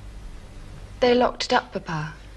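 A young woman speaks curtly nearby.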